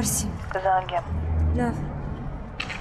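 A young woman speaks briefly into a phone, close by.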